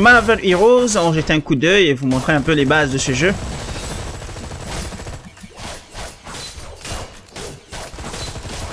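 Weapons zap and blows thud in a fast fight.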